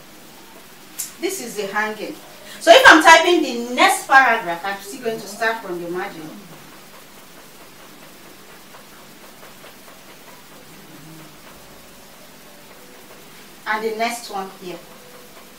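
A young woman speaks calmly and clearly, as if teaching.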